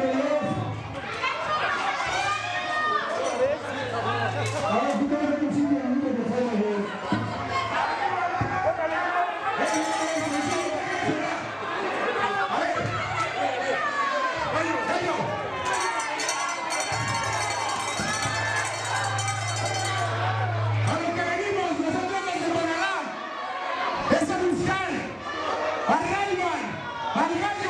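A man shouts with animation through a microphone over loudspeakers in an echoing hall.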